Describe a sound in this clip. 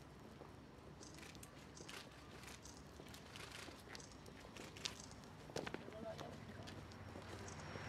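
Footsteps shuffle on pavement outdoors.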